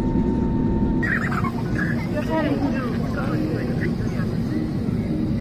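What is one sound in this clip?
An elderly woman talks cheerfully close by.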